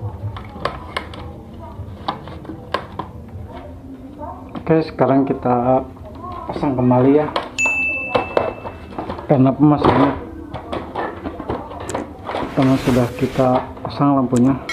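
Plastic parts knock and click as they are handled up close.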